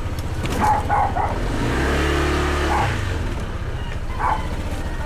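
A motorcycle engine idles with a steady, rapid putter.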